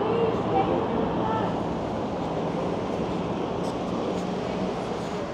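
Wind rushes past while riding an electric bike.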